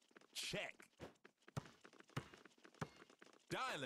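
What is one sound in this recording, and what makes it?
A basketball bounces with sharp thuds on a hard court.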